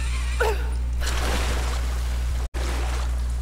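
Water splashes as someone lands in it.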